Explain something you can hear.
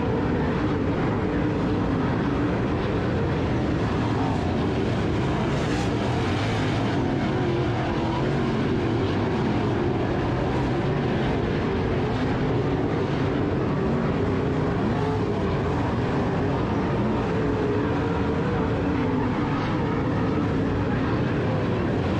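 Engines rise and fall in pitch as cars pass and accelerate.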